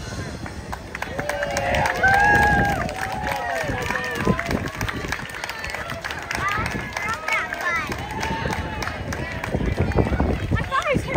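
Children and adults shout and cheer loudly from the roadside.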